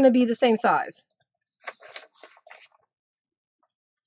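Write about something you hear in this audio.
A paper trimmer blade slides along and cuts through card.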